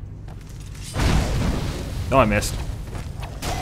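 A burst of magical flames roars and crackles.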